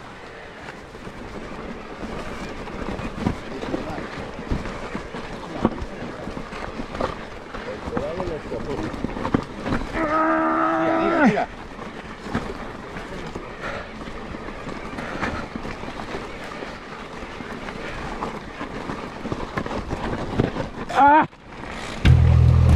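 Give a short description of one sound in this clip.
A mountain bike rattles and crunches over a rough dirt trail.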